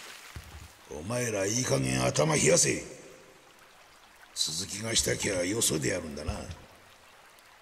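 A middle-aged man speaks gruffly and mockingly.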